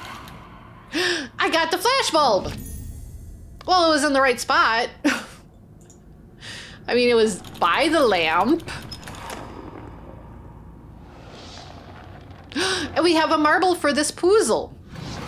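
A middle-aged woman talks with animation, close to a microphone.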